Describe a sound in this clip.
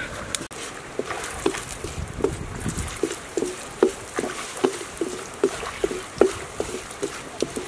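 A metal spatula scrapes and taps against a metal wok in a steady rhythm.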